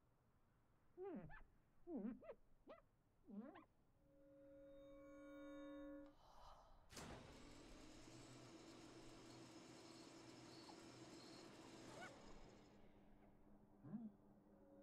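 A squeegee squeaks across wet glass.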